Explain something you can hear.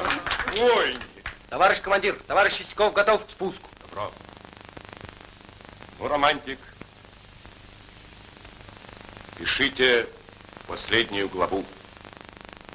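An older man speaks firmly.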